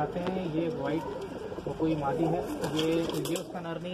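A pigeon flaps its wings briefly.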